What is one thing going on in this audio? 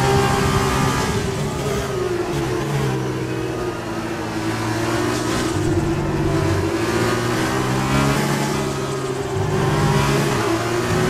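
A racing car engine drops in pitch as the car slows, then revs up again through the gears.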